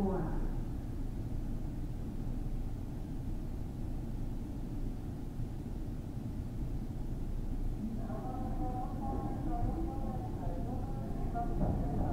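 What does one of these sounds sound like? A train rumbles low and steady on the tracks.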